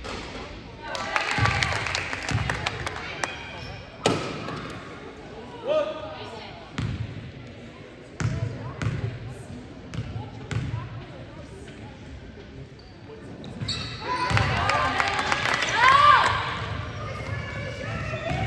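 Spectators cheer and shout in a gym.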